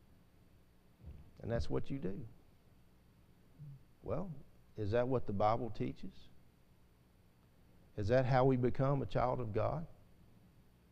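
A middle-aged man speaks slowly and deliberately through a microphone, with long pauses.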